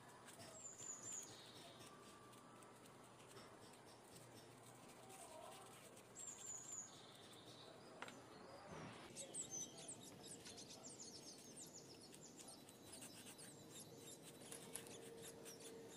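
A brush scrapes glue onto a rubber sole.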